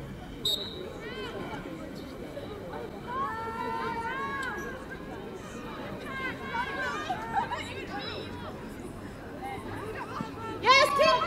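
Young women shout and call out to each other across an open field outdoors.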